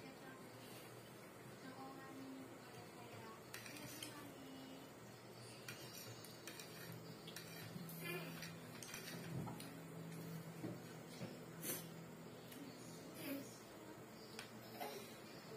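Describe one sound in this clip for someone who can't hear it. A woman chews food noisily close by.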